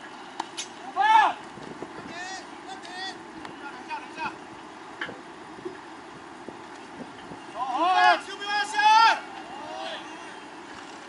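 Young men shout and call out loudly across an open field.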